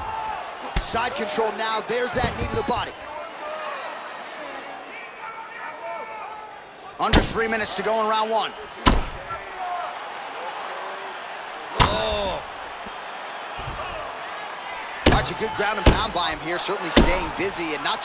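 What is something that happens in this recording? Heavy blows thud against a body in short bursts.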